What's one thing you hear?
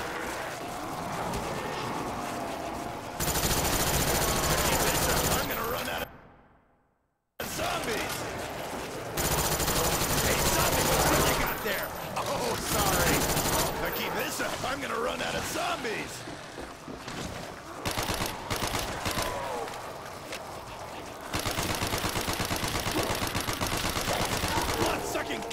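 Zombies groan and snarl close by.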